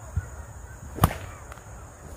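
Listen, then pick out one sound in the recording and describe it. A thrown blade strikes a wooden target with a sharp thud.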